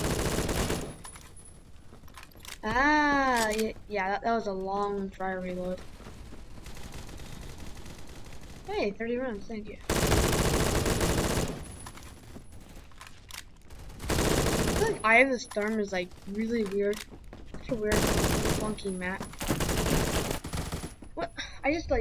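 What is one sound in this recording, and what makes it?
Bursts of rapid gunfire ring out.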